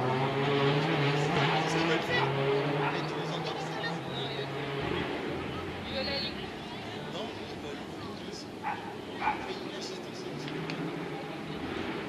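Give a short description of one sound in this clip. A crowd of spectators murmurs and chatters at a distance outdoors.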